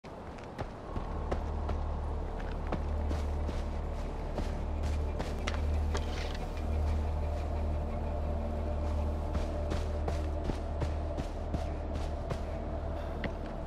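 Footsteps crunch over grass and rock.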